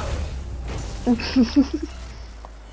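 An electric blast crackles and sparks burst.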